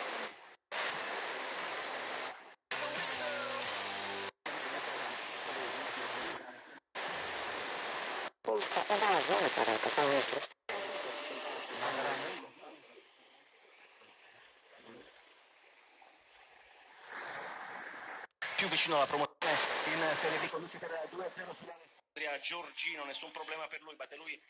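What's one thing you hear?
A small radio plays loud static and snatches of broadcast sound, cutting in and out as it is tuned.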